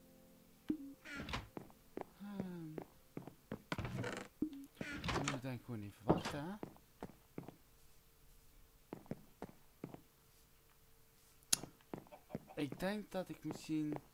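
Footsteps thud on grass and wooden planks.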